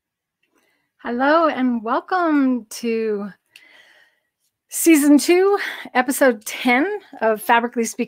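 A middle-aged woman talks with animation into a microphone.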